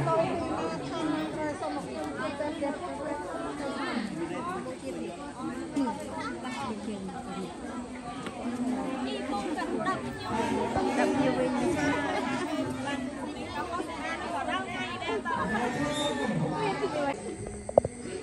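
A crowd of men and women murmur and chat close by.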